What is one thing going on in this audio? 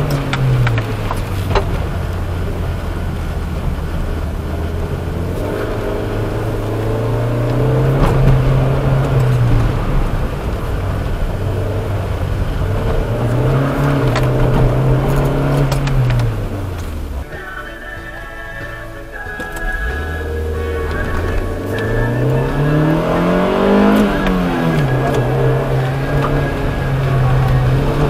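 A car engine revs up and down as the car drives fast.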